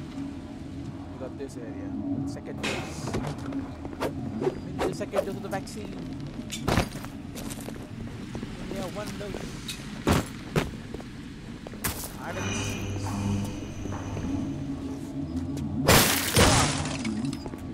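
Footsteps clatter on a hard floor.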